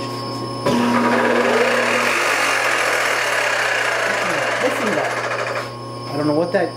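A milling machine runs with a loud rushing whir, then stops.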